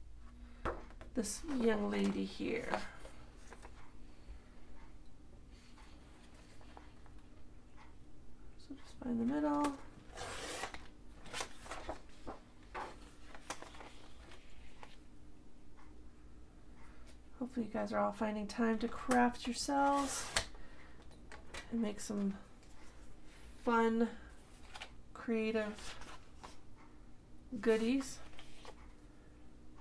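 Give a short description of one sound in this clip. Sheets of paper rustle and slide against each other.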